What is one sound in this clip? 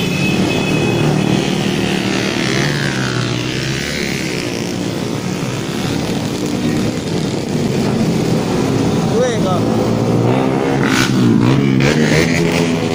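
Many motorcycle engines drone and rev close by as a procession passes.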